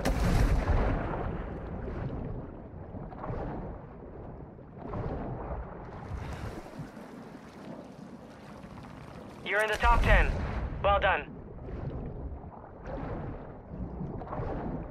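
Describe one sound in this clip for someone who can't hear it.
Water gurgles and sloshes in rhythmic strokes as a swimmer moves underwater.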